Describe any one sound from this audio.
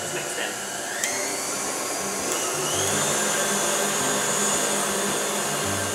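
An electric stand mixer starts up and whirs at high speed.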